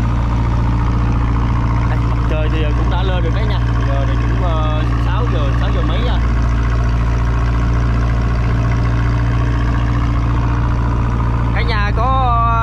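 A boat engine drones steadily and loudly close by.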